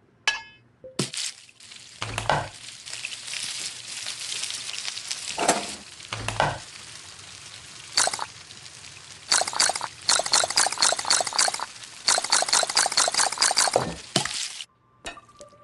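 A tablet game plays a loud sizzling of meat frying in a pan.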